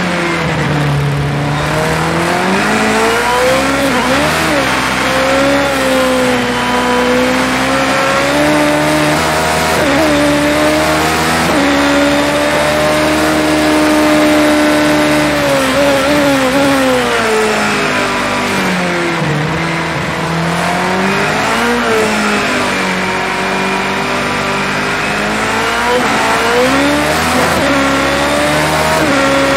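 A racing car engine roars, rising and falling in pitch as gears shift.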